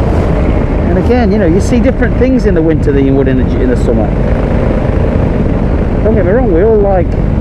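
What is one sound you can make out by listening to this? A man talks through a helmet microphone over the wind.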